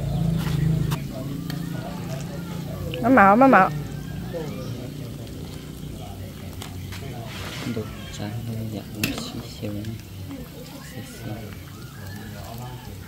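A thick stew simmers and bubbles in a pot.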